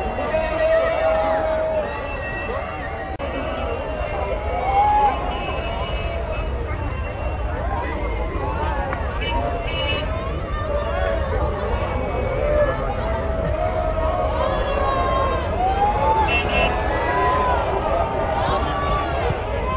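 A large crowd cheers and shouts excitedly close by.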